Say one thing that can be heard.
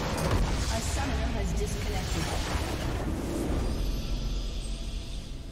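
A huge explosion booms and crackles, then slowly dies away.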